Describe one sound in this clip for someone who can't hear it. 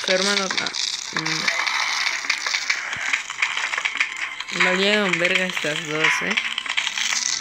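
Soft popping game sounds of peas firing and hitting repeat quickly.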